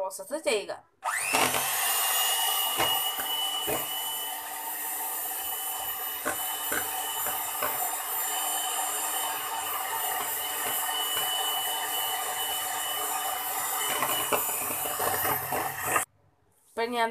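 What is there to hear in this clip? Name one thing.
An electric hand mixer whirs steadily as it beats a mixture in a bowl.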